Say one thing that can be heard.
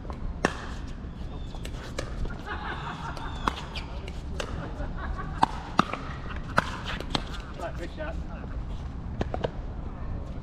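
Paddles pop against a plastic ball in quick, sharp knocks.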